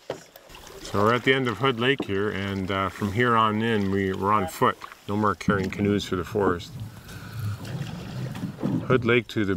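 A middle-aged man speaks calmly close by, outdoors.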